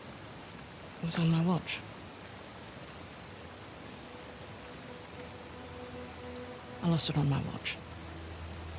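A young woman speaks calmly and curtly, close by.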